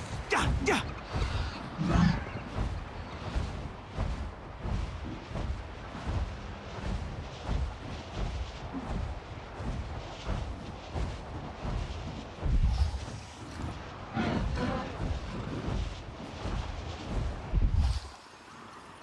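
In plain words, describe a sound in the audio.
Large wings flap in a steady rhythm.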